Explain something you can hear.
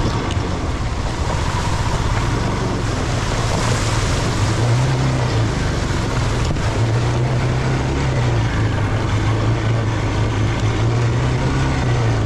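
Water splashes and sprays under a motorcycle's tyres.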